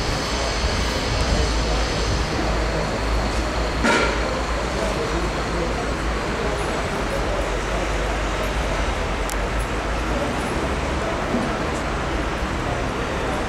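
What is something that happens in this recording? A crowd of men and women chatters close by outdoors.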